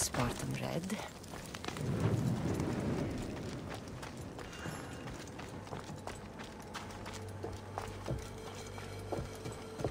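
Footsteps run quickly across stone and wooden boards.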